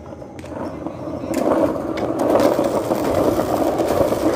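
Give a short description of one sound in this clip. Small hard wheels roll and rumble on pavement.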